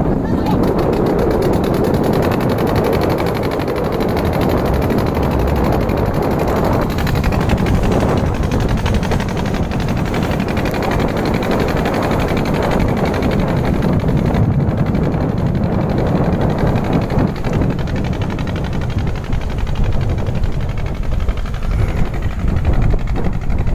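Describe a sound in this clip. A boat engine chugs steadily and slowly moves away.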